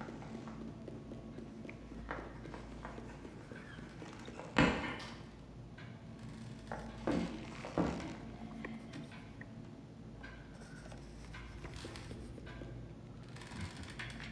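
Small footsteps patter quickly on a hard floor.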